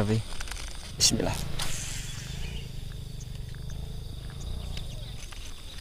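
A baitcasting reel's spool whirs as a fishing line is cast.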